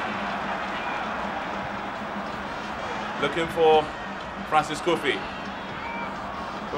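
A large crowd murmurs steadily.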